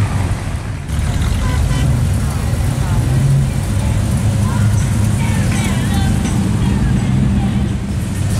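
A car engine rumbles deeply as it rolls slowly past.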